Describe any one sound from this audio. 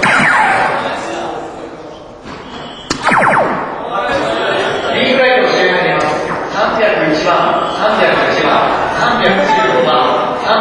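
A crowd of young people chatters and cheers in a large echoing hall.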